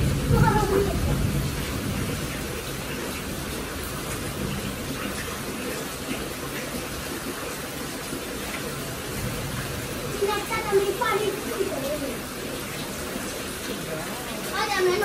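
Young children talk and call out close by.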